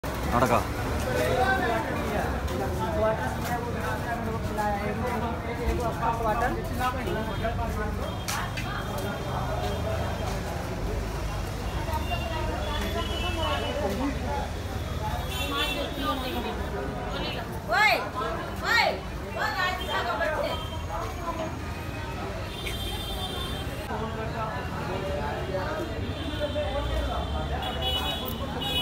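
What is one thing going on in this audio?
Men talk and shout excitedly nearby outdoors.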